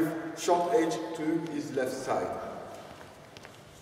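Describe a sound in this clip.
A man speaks with animation, his voice echoing in a large hall.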